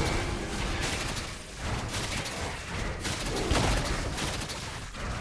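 Game sound effects of attacks and spells clash and hiss.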